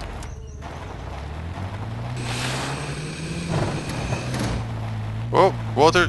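A quad bike engine revs and rises in pitch.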